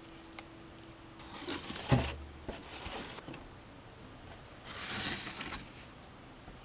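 Cardboard rustles and scrapes as it is handled.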